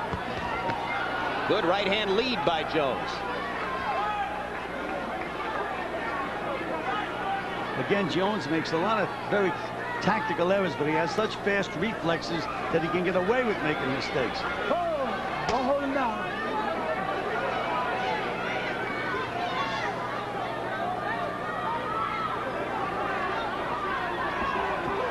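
A large crowd murmurs throughout in a big echoing hall.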